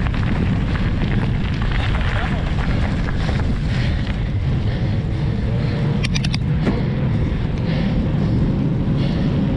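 Wind buffets loudly outdoors throughout.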